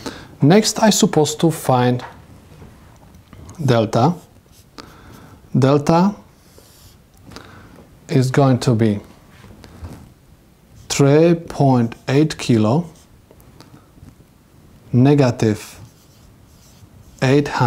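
A man explains calmly and close by, in short phrases with pauses.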